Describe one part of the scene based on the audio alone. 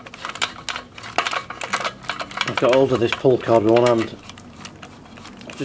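Plastic parts click and knock as hands handle them.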